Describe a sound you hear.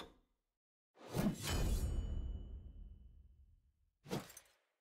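A deep boom sounds and slowly fades.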